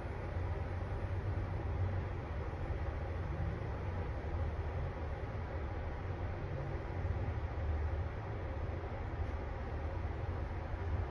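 An elevator hums and rumbles steadily as it rises.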